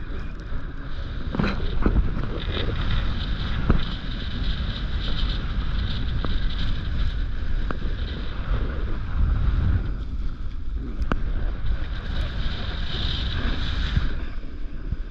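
A snowboard scrapes and hisses over hard snow.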